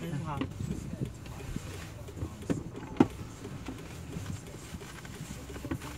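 A young man speaks nearby in a car.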